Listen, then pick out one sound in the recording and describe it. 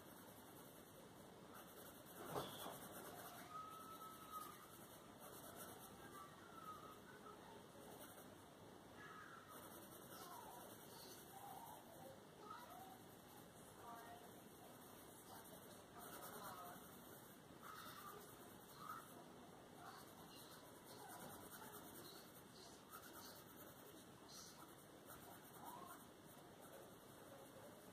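A coloured pencil scratches softly across paper.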